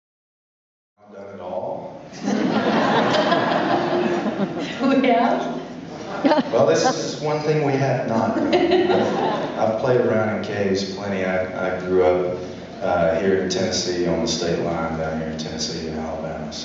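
A man strums an acoustic guitar through loudspeakers in a large hall.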